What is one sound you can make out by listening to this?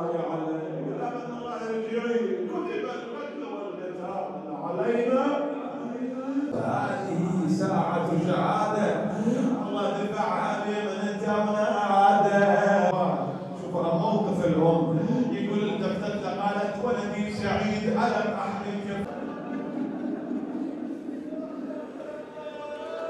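A man chants mournfully into a microphone, heard through loudspeakers in a large echoing hall.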